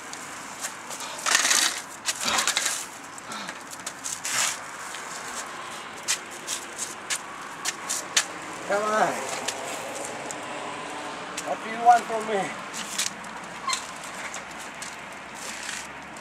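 A bicycle rattles and clicks as it is wheeled and handled close by.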